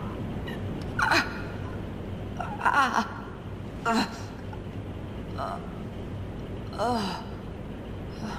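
A young woman gasps and whimpers softly close by.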